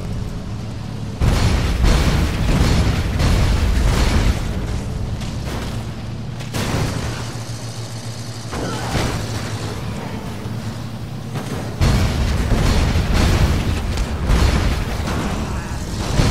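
Bodies thud against the front of a vehicle as it ploughs through them.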